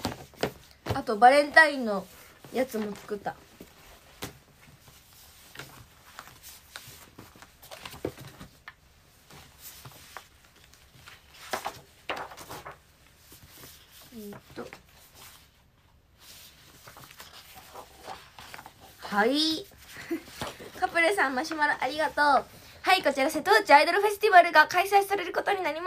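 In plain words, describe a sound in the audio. A young woman speaks close to a microphone, brightly and with animation.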